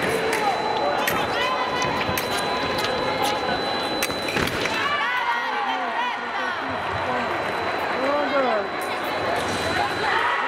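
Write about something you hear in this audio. Shoes squeak on the floor.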